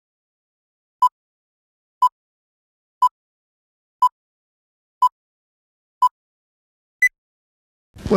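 Short electronic beeps sound once a second, the last one higher.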